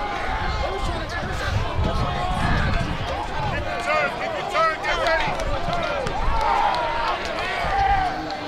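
Many young men and boys shout and cheer outdoors.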